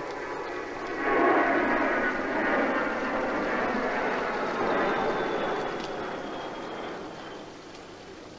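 A jet plane roars overhead and slowly fades.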